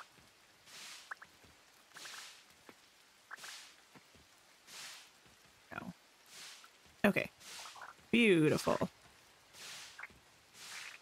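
A game character pulls up crops with a soft rustling whoosh, again and again.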